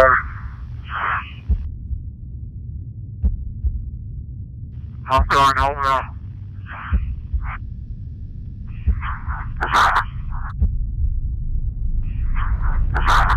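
A man speaks over a radio link.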